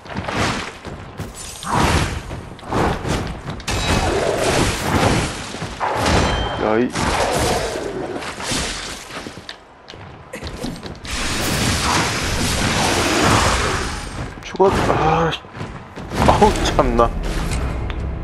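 Sword blades slash and clang in a fight.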